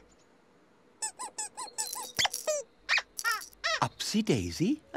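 A high, squeaky character voice chirps and babbles playfully.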